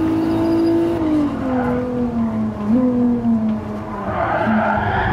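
A car engine drones loudly, its pitch dropping as the car slows and shifts gears.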